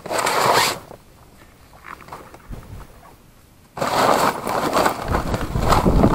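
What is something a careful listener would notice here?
Cloth rustles and crinkles close by.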